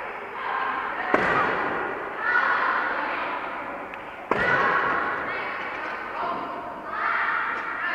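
Many young voices shout and chatter in a large echoing hall.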